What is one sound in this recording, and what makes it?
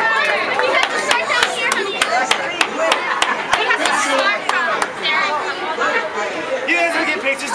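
A crowd of people cheers and chatters loudly.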